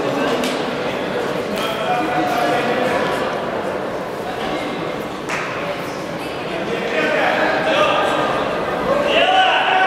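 A man calls out loudly across the echoing hall.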